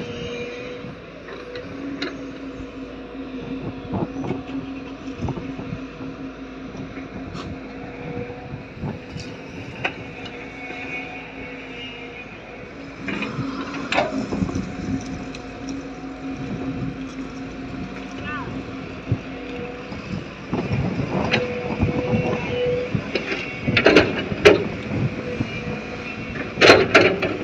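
A diesel excavator engine hums steadily nearby.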